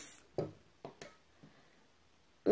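A metal ruler knocks lightly against a table.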